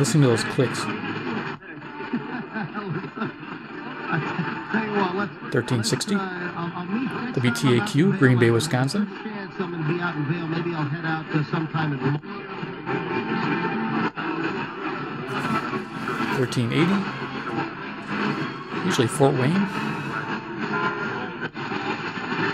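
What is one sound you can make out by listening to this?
A radio plays a broadcast with voices and music through a small loudspeaker.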